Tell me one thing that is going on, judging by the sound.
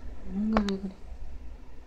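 A puppy gives a short whimper.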